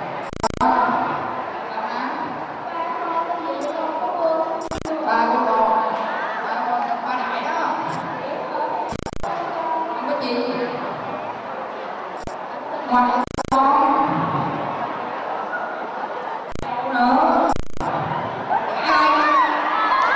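Young people talk and call out over a loudspeaker.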